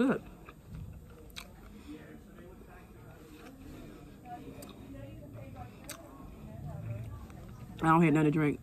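A woman chews food noisily close by.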